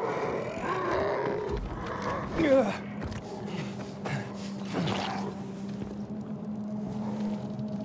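A zombie growls and snarls nearby.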